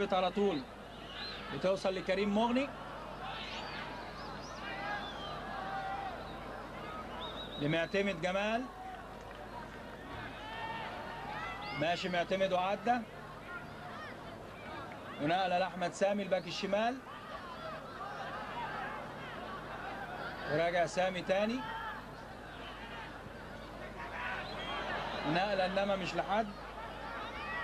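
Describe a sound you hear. A large crowd chants in bursts that repeat every few seconds.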